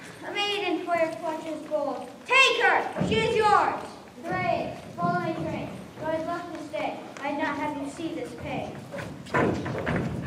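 Young girls speak lines on a stage, heard from across an echoing hall.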